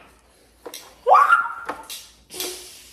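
A young woman shrieks loudly.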